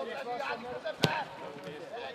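A football thumps off a boot.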